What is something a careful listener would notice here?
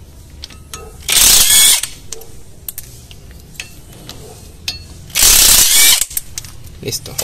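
A cordless impact driver whirs in short bursts, loosening bolts.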